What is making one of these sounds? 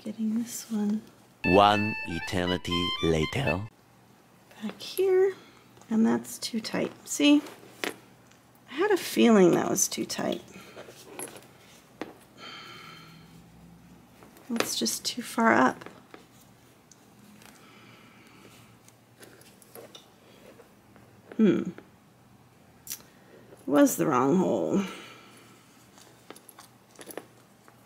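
Stiff fabric rustles and crinkles as it is handled.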